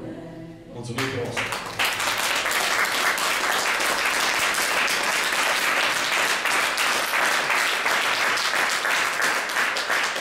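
An audience applauds loudly and steadily in an echoing room.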